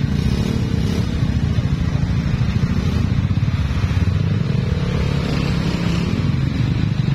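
A motor scooter engine hums close by.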